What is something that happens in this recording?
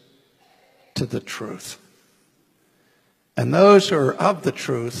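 An elderly man speaks emphatically into a microphone, close up.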